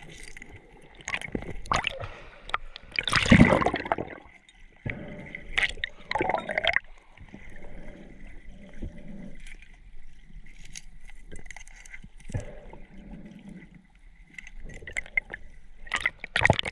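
A hand knocks and scrapes against rocks underwater, heard muffled through the water.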